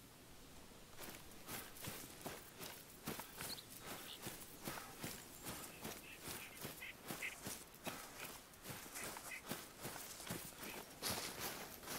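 Footsteps rustle steadily through dry grass.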